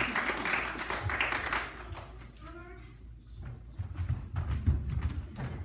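Young girls' feet thump and patter on a wooden floor.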